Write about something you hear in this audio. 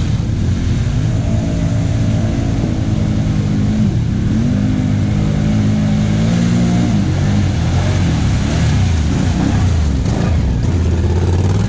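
A quad bike engine revs and roars as it approaches.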